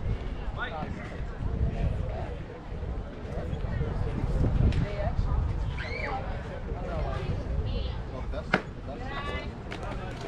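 Young players call out across the field.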